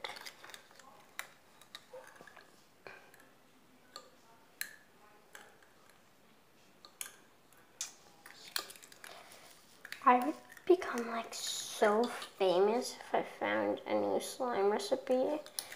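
Plastic lids click and tap softly.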